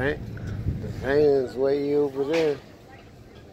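A girl talks casually nearby.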